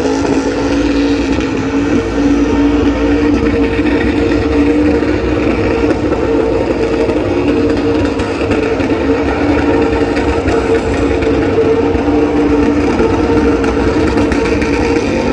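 A car engine roars steadily at high revs in the distance.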